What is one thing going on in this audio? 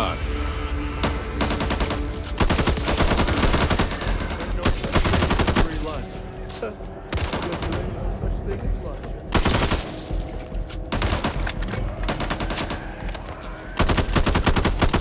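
Rapid gunfire rattles in loud, quick bursts.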